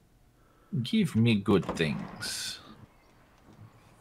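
A garage door rolls open.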